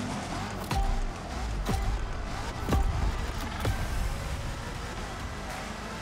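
Race car engines rumble and rev loudly.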